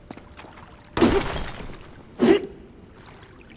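A hammer strikes and shatters rock.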